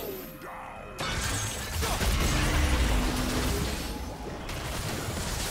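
Blows thud and clash in a fight.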